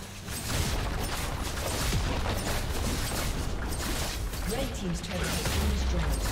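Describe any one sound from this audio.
Magic spells crackle and whoosh in a fast fight.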